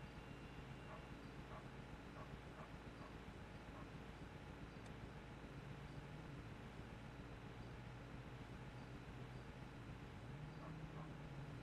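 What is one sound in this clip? Refrigerators hum steadily in the background.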